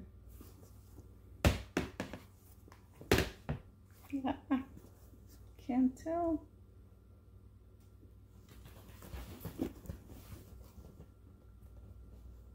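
A leather bag flaps and thumps as it is handled.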